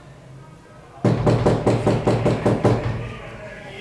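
Knuckles rap rapidly on a door.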